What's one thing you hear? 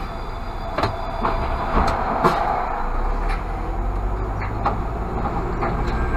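An electric bus passes close by with a whirring hum.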